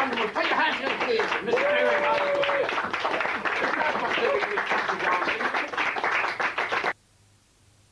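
A man sings loudly.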